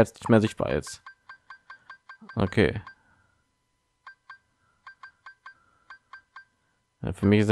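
Short electronic menu beeps tick in quick succession.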